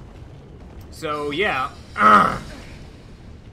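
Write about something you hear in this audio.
A sword clangs and swishes through the air.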